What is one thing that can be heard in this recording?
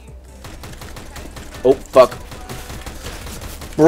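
Rapid gunshots fire in a video game.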